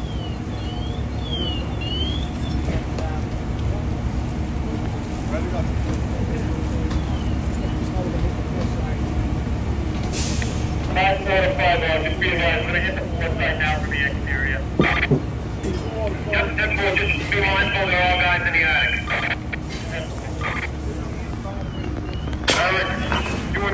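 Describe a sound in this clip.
A fire roars and crackles steadily.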